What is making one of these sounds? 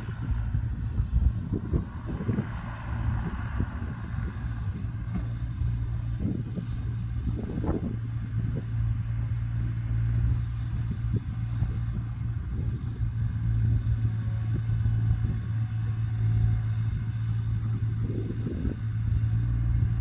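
An excavator bucket scrapes and thuds into wet soil.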